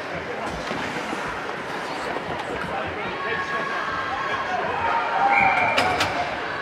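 A crowd chatters and cheers in a large echoing arena.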